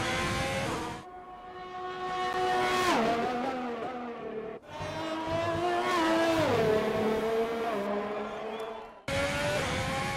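A Formula 1 car races past, its engine note dropping in pitch.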